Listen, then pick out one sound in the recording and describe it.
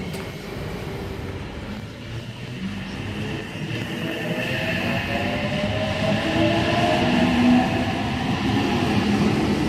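Train wheels rumble and squeal on the rails.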